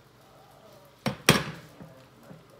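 A glass bowl knocks down onto a hard surface.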